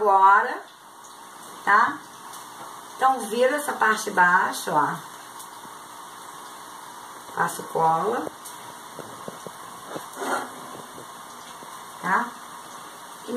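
A middle-aged woman speaks close by in short bursts.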